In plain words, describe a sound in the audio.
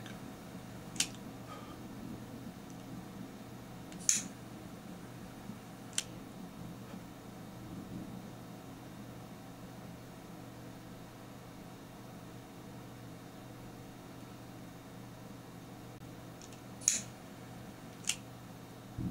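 Small metal tweezers click softly now and then.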